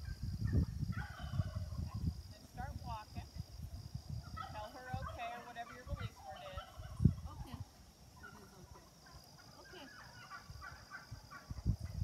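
A woman speaks calmly to a dog at a distance.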